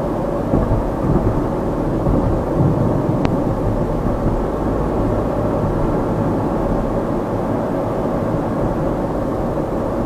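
Tyres roll steadily on smooth tarmac.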